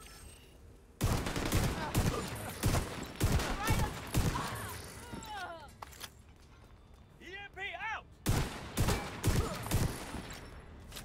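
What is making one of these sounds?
Gunfire rings out in rapid, loud bursts.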